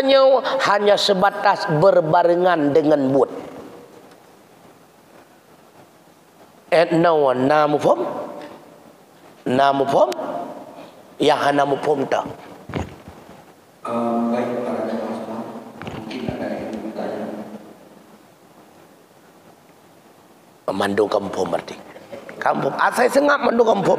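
A man speaks with animation through a microphone in a slightly echoing room, pausing now and then.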